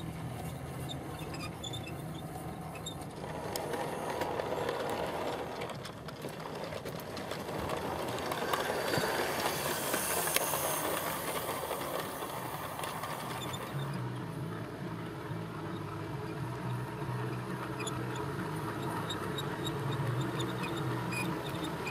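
Model train wheels rumble and click along the track.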